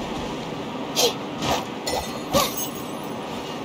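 A sword slash whooshes in a video game.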